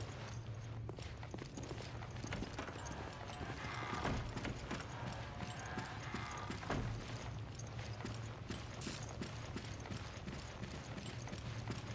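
Footsteps tap on a hard floor at a steady walking pace.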